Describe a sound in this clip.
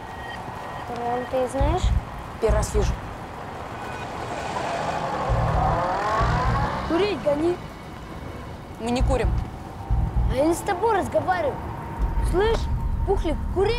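Young boys talk and call out with animation.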